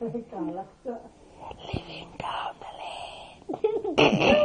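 A small boy babbles and laughs close by.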